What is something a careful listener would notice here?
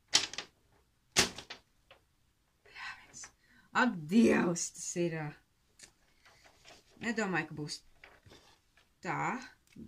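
A sheet of paper rustles and crinkles in someone's hands.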